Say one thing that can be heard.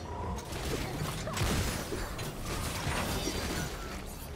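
Magic blasts crackle and burst in quick succession.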